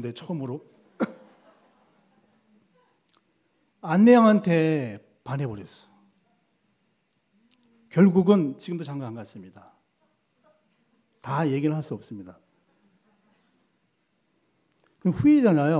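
A middle-aged man speaks with feeling into a microphone, in short bursts with long pauses.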